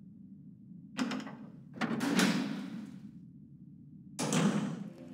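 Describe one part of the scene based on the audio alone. A heavy metal door unlatches and creaks open with loud clanks.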